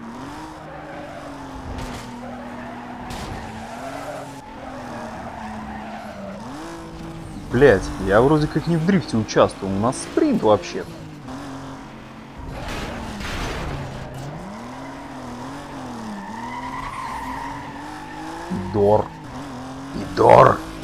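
A car engine roars steadily, rising and falling in pitch as it shifts gears.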